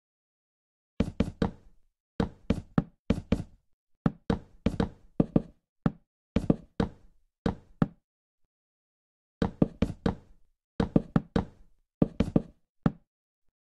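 Wooden blocks are placed one after another with quick, hollow knocks.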